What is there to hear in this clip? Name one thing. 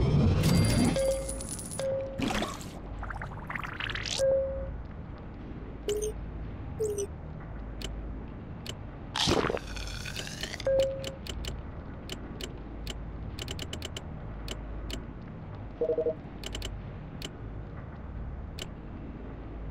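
Short electronic beeps and clicks sound.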